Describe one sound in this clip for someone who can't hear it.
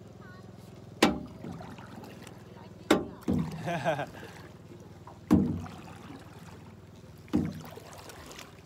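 An oar knocks against a boat and splashes in water at a steady pace.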